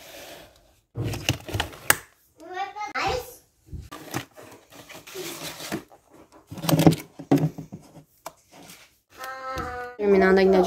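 Plastic containers knock and scrape against each other.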